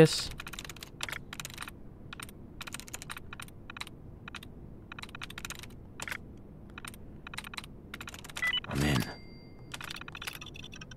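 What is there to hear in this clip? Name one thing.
A computer terminal ticks and clicks in quick bursts.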